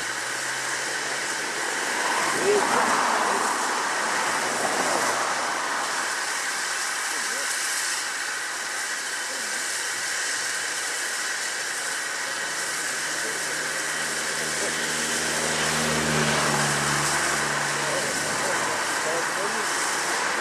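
A river rushes steadily over rocks.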